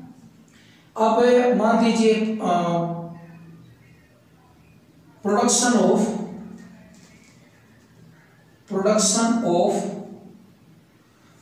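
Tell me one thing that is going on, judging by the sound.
A man speaks slowly and deliberately nearby, in short phrases with pauses.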